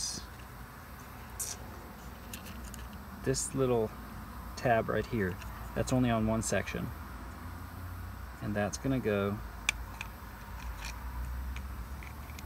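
Small plastic and metal parts click and rattle in a hand.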